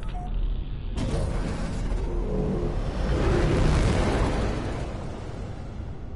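A spaceship engine roars louder as the ship speeds out into space.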